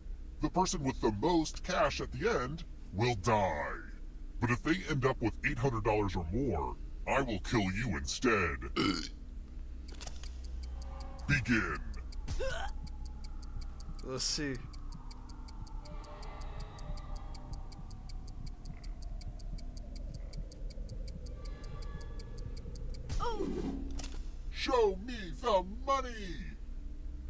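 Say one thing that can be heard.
A young man talks and exclaims with animation close to a microphone.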